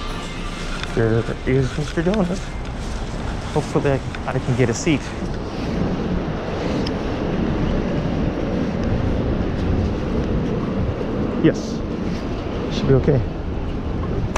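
Footsteps walk on hard paving outdoors.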